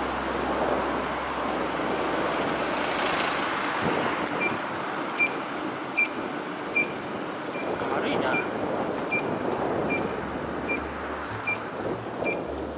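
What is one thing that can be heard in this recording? Wind rushes steadily past.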